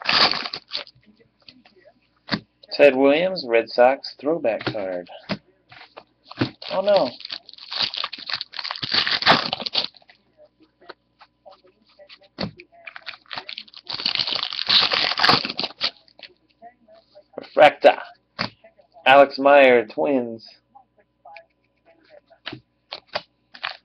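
Trading cards flick and shuffle in hands.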